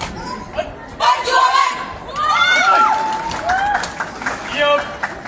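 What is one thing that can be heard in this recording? A group of young people shout together in unison.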